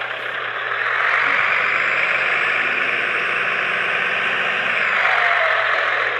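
A truck engine revs up and roars louder.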